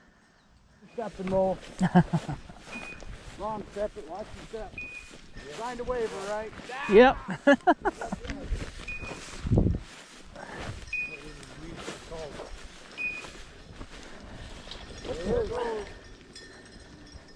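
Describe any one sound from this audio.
Footsteps swish and crunch through dry grass.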